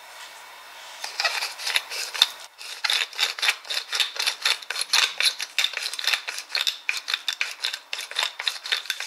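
A pepper mill grinds in quick, crackling bursts.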